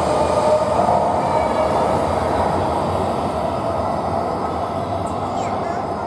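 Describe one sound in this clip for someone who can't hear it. A high-speed train glides slowly into an echoing station with a soft hum.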